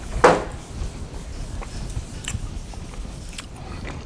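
A man erases a chalkboard with a board eraser.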